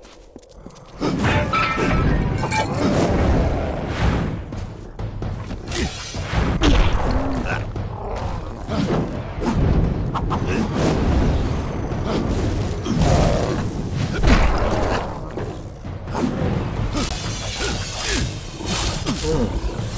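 Metal weapons clash and thud in a fight.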